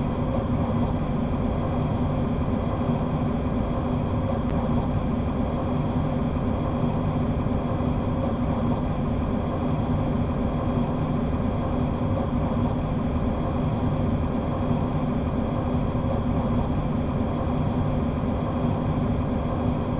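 An electric train hums and rumbles steadily along the track.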